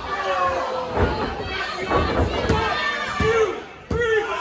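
Wrestlers slam onto the ring mat with heavy thuds.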